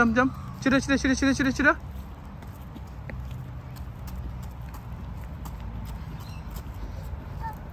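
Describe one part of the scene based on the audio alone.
Small footsteps patter on a paved path.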